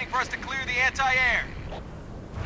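A young man speaks briefly and animatedly into a close microphone.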